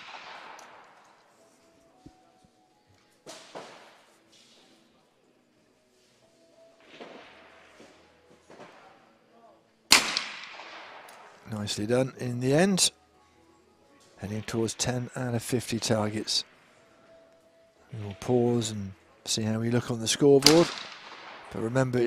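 Shotgun shots bang out one by one outdoors, each fading with an echo.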